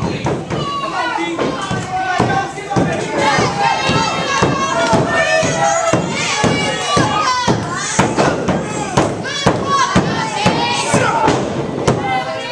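A crowd of men and women shouts and cheers in an echoing hall.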